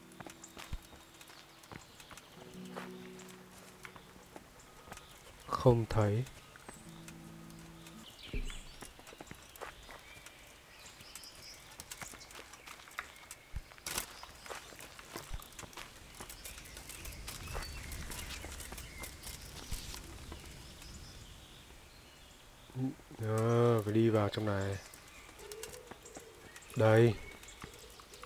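Footsteps crunch on gravel and grass.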